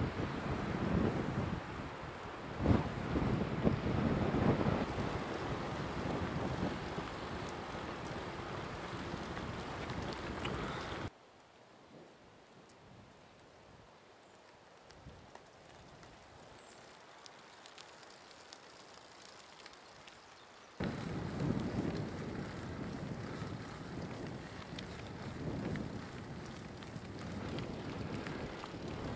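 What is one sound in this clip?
Wind buffets the microphone loudly.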